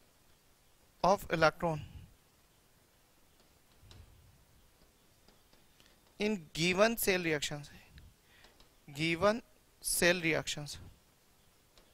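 A man speaks into a microphone in short, calm bursts.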